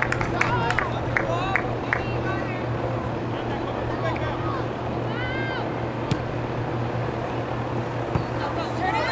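Young women shout to each other across an open field.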